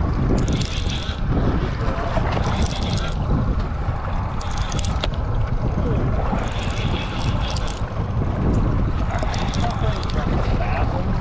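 A fishing reel clicks and whirs in quick bursts as it is cranked.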